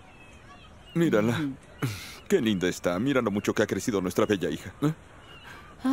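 A man sings close by in a warm voice.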